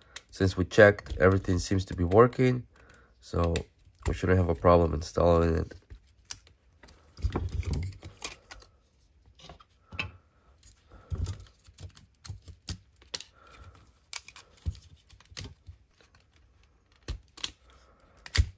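Plastic parts click and snap as a game controller is taken apart by hand.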